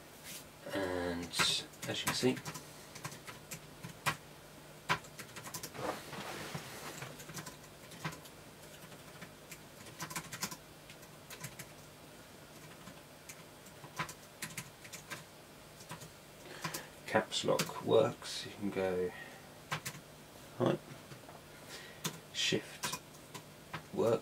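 Fingers tap quickly on a computer keyboard.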